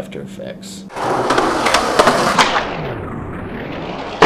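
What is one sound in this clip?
Skateboard wheels roll on concrete and clatter.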